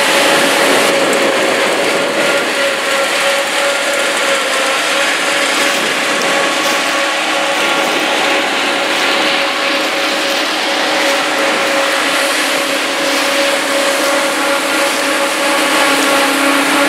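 A combine harvester's engine roars steadily close by.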